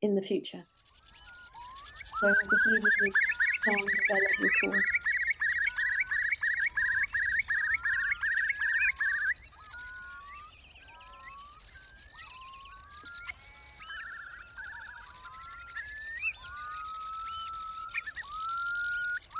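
Birds call repeatedly with rising whistling notes.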